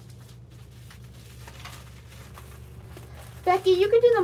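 A plastic mailer rustles and crinkles as it is handled.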